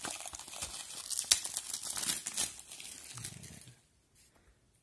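Plastic wrapping crinkles and rustles under fingers.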